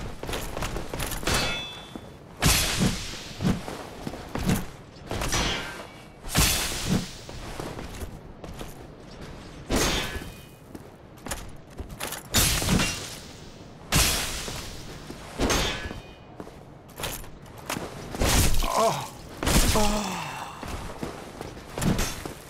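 Metal weapons clash and strike.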